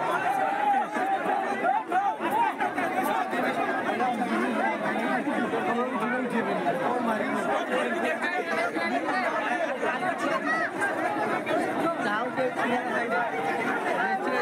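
A dense crowd of men and women chatter and shout close by.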